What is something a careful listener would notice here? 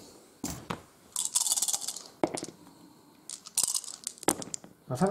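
Dice rattle in a shaking hand.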